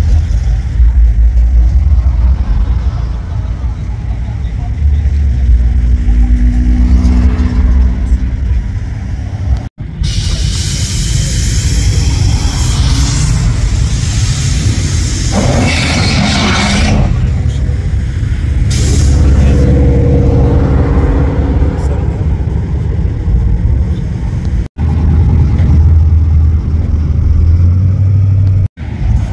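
Car engines rumble as cars roll slowly past.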